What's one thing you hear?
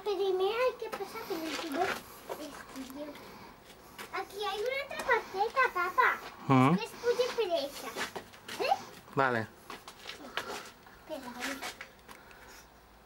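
A young girl chatters and squeals close by.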